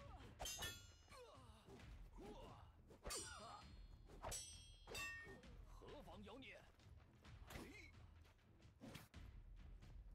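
Metal blades clash and ring in rapid strikes.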